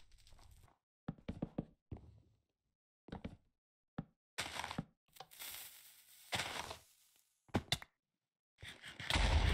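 Short video game sound effects click and pop.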